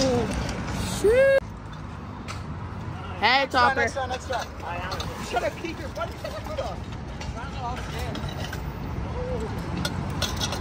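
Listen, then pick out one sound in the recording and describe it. Scooter wheels roll and rumble on paving stones.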